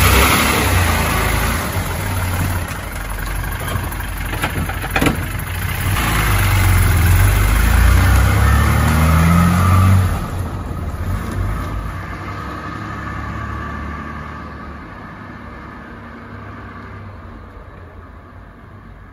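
An old car engine rumbles, then the car pulls away and fades into the distance.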